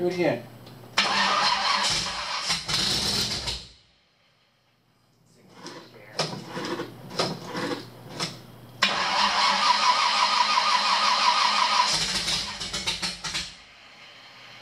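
A car engine revs loudly in bursts.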